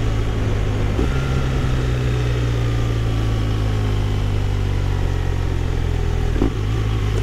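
A motorcycle engine slows down, its hum dropping in pitch.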